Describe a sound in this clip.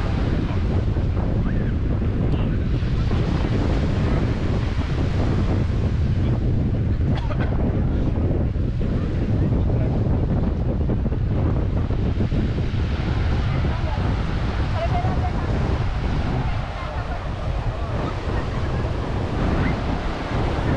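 Strong wind blows outdoors, rumbling into the microphone.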